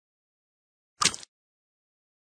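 A lemon is chopped in half with a quick slicing sound.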